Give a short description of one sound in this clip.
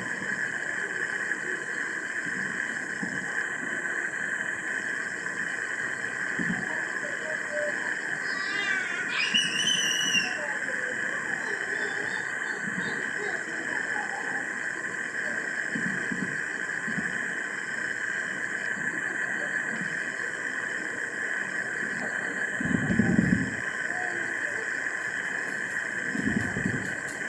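Distant fireworks thud and boom faintly.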